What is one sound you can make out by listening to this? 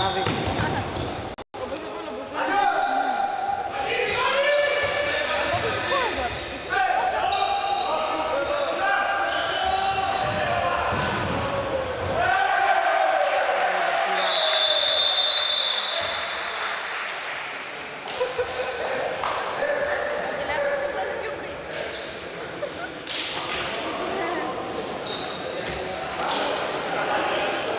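Sneakers squeak sharply in a large echoing hall.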